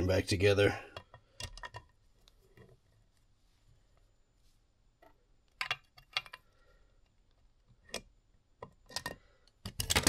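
Metal pliers clink against an engine part.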